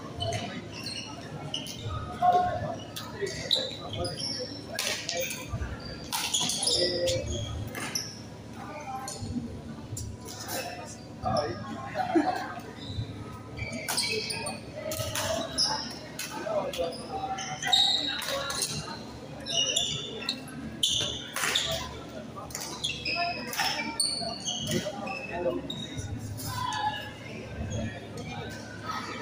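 Rackets strike a shuttlecock with sharp pops, back and forth.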